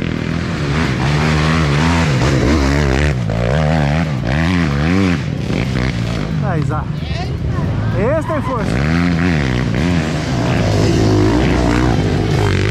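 Dirt bike engines rev and sputter up close, rising and falling in pitch.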